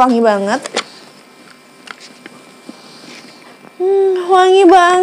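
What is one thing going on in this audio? A young woman speaks in a drawn-out, sing-song voice close to a microphone.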